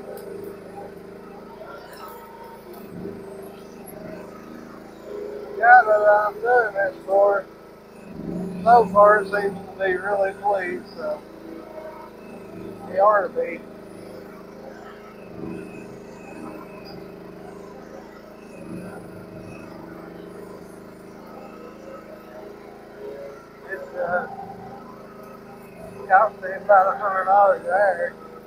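A small excavator engine runs with a steady low hum.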